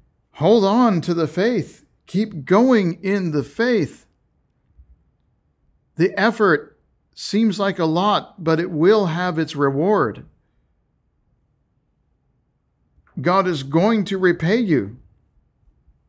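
A middle-aged man speaks calmly and close into a microphone, pausing between phrases.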